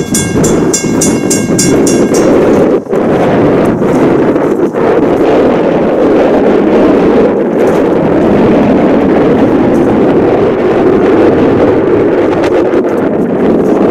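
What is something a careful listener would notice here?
Strong wind rumbles steadily across the microphone outdoors.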